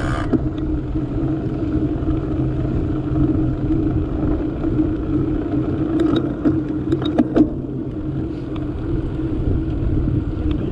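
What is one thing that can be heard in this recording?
Bicycle tyres hum steadily on the road.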